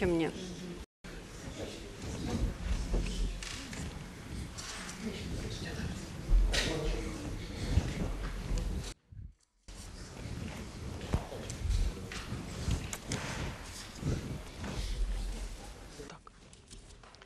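A crowd of people chatters quietly in the background.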